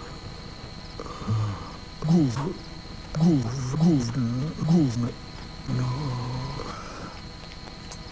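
An elderly man speaks slowly and calmly, in short phrases.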